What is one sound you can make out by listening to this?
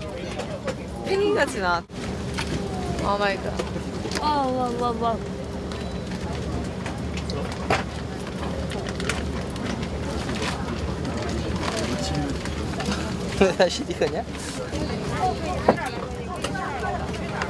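Young women talk playfully in high voices nearby.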